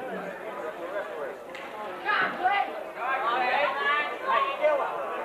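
A crowd murmurs in the background.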